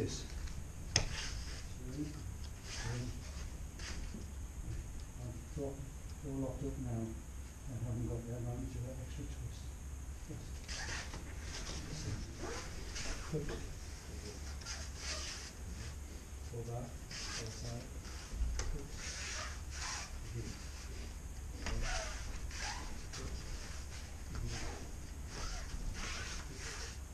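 Loose cotton uniforms swish and rustle with quick movements.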